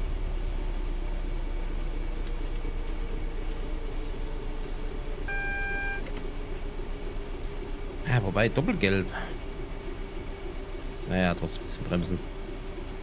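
Train wheels clatter on the rails.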